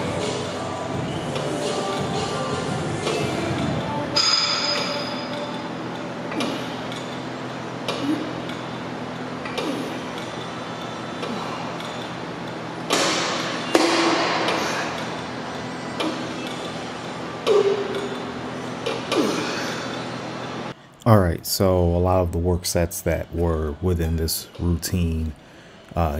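Weight plates on an exercise machine clank as they lift and drop.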